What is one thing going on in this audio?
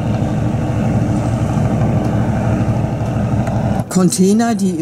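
A motorboat engine hums steadily across the water.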